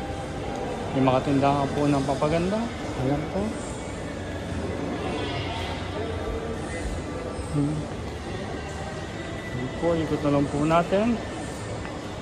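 A young woman talks casually nearby in a large echoing hall.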